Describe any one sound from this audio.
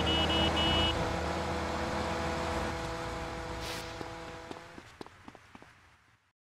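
Footsteps run across pavement.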